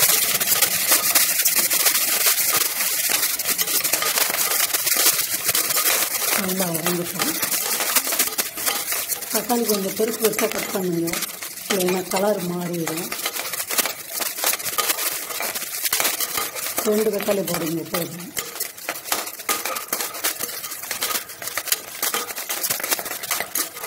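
A metal spatula scrapes and clatters against a metal pot.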